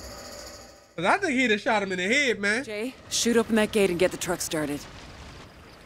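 A middle-aged woman gives orders urgently.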